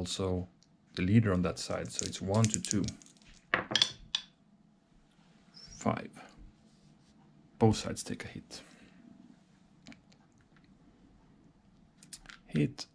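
Small game pieces click softly as they are placed on a tabletop.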